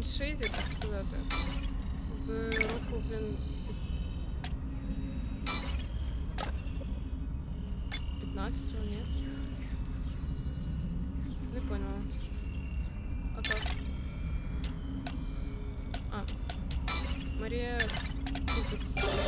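Short electronic chimes and clicks sound from a game.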